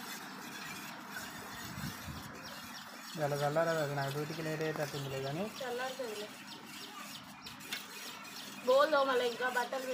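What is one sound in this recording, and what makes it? A spoon clinks against a metal bowl.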